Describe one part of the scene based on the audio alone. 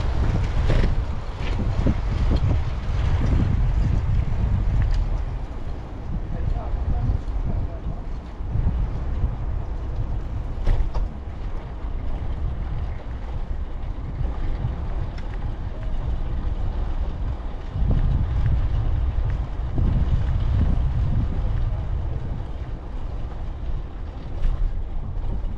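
A bicycle rattles and ticks as it rolls along.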